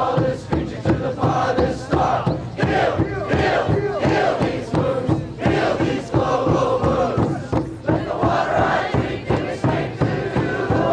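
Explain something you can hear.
A singer's voice rings out over the band.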